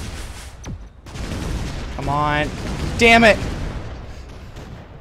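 Explosions burst and crackle in a video game.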